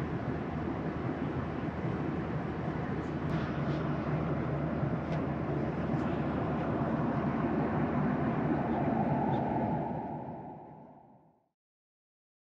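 A jet engine roars steadily and then fades out.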